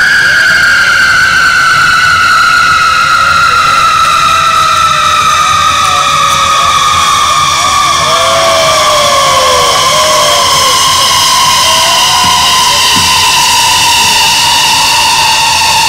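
A large fire roars and crackles steadily.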